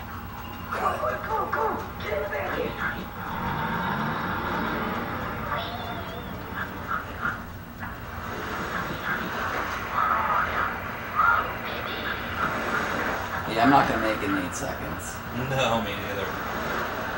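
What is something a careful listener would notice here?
Game music and sound effects play from a television speaker.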